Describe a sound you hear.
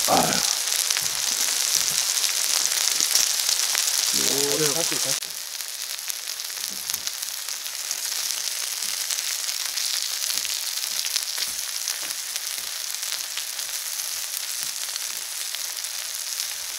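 Meat sizzles loudly on a hot grill.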